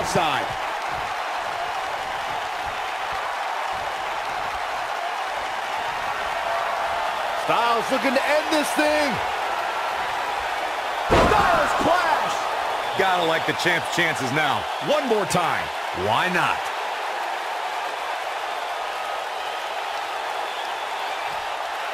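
A large crowd cheers and roars steadily in an arena.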